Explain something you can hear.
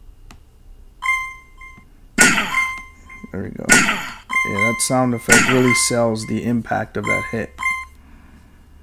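Short electronic game chimes ring out in quick succession.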